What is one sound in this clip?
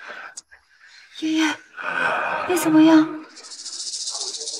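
A young man calls out anxiously.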